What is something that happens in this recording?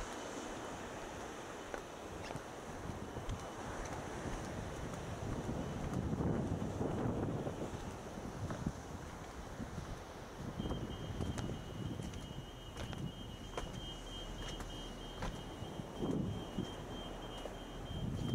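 Footsteps scuff on a sandy stone path.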